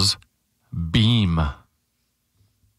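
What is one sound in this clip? A man speaks briefly and with animation, close into a microphone.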